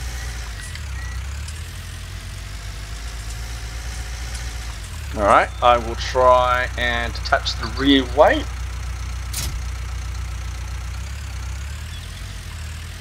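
A tractor engine idles with a low, steady hum.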